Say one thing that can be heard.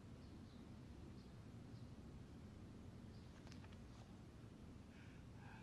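A man quietly sips tea from a cup.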